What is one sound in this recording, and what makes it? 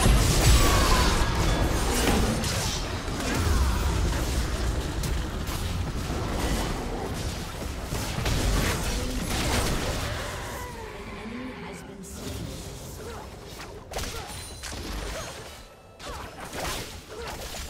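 Game spell effects and attacks crackle and burst in quick succession.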